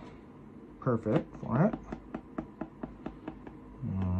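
A small stick scrapes and pokes at soil in a plant pot.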